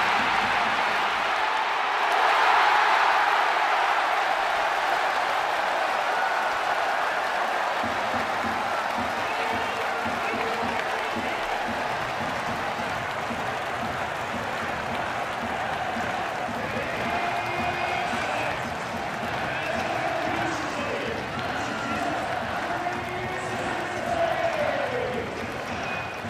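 A stadium crowd cheers loudly and steadily.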